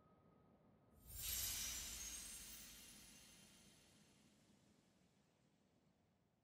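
A magic beam bursts upward with a bright, shimmering whoosh that slowly fades.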